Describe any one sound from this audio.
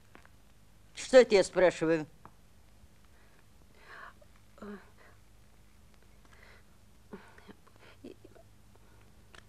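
A woman speaks with emotion, close by.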